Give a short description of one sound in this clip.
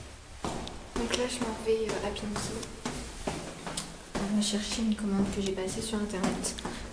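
A young woman talks close by, casually.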